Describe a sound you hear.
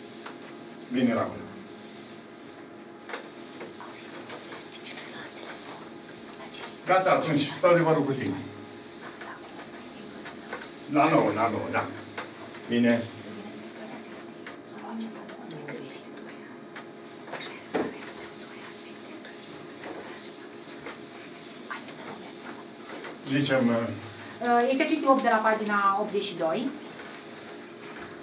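A sponge rubs across a blackboard.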